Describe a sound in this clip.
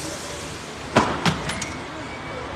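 Luggage knocks against the ground.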